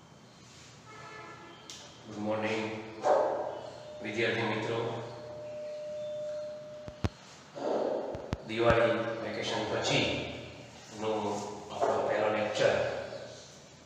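A middle-aged man speaks calmly through a headset microphone.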